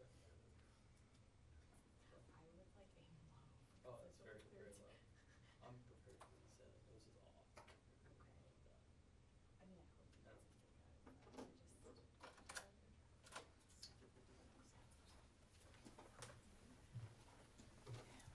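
A few people murmur quietly in a room.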